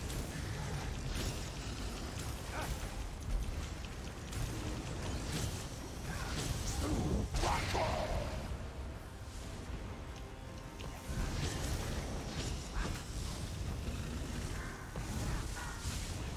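Magic spells crackle and burst in a fierce battle.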